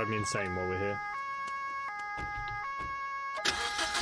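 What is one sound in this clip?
A car door opens and shuts.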